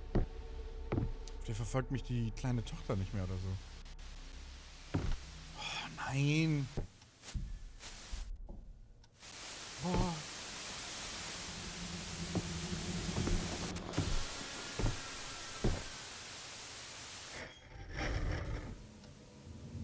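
A man speaks close to a microphone, with animation.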